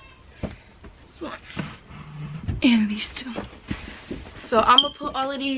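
Clothes rustle as they are handled.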